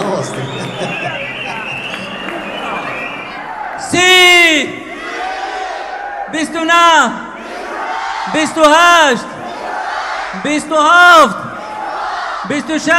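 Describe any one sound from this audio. A crowd cheers and shouts throughout.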